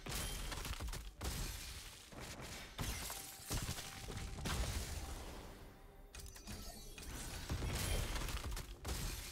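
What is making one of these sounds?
Ice crystals burst and shatter with a sharp, crackling whoosh.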